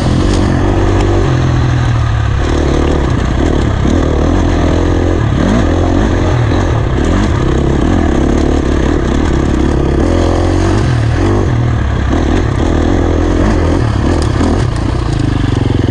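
A dirt bike engine revs loudly up and down, close by.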